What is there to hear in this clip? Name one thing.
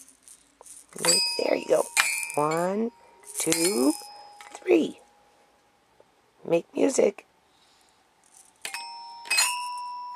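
Metal xylophone bars ring out when struck.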